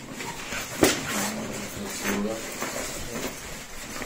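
A zipper rasps shut.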